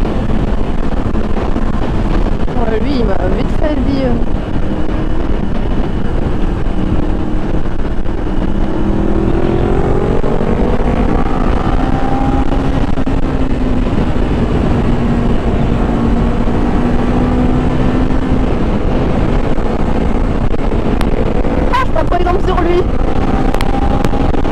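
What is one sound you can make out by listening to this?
A motorcycle engine hums steadily, rising and falling in pitch.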